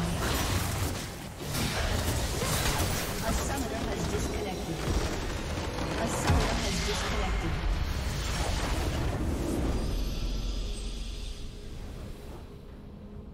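Game spell effects whoosh and crackle loudly.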